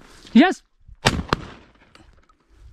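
A shotgun fires a single shot outdoors.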